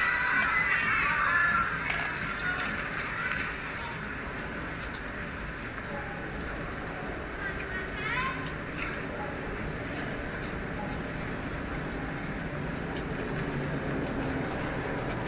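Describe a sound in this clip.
A crowd murmurs in a large stadium.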